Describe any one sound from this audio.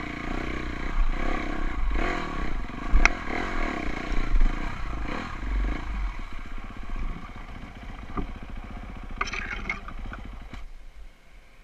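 A dirt bike engine revs and putters up close.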